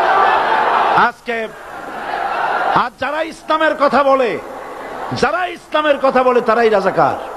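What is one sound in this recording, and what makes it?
A man speaks forcefully through a loudspeaker system.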